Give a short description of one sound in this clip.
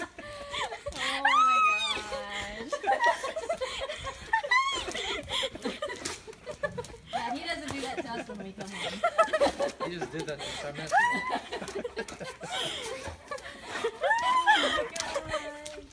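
A dog whines and yelps excitedly.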